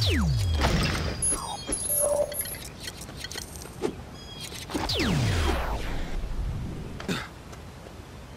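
Electronic game sounds whoosh and sweep downward in pitch.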